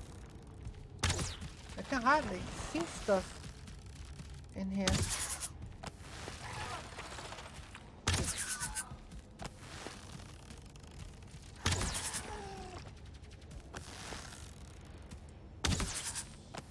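A heavy weapon swings and strikes with a sharp whoosh, again and again.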